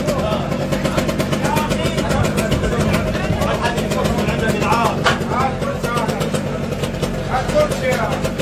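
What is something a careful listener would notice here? Several men shout and call out excitedly nearby.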